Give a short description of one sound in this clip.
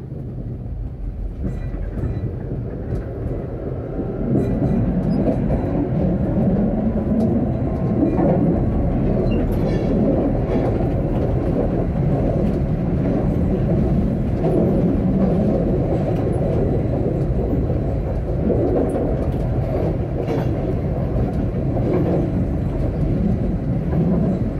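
A tram rumbles steadily along the rails.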